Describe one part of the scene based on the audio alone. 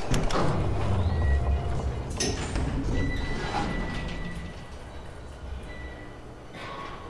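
An elevator car rumbles with a low hum as it moves.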